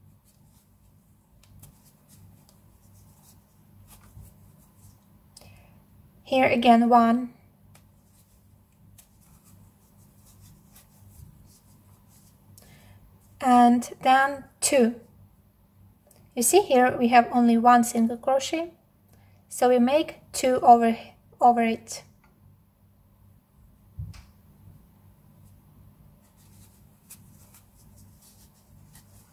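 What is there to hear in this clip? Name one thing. A crochet hook rustles softly through thick yarn.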